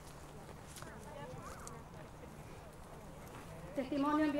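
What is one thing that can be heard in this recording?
A woman speaks calmly to a gathered crowd outdoors.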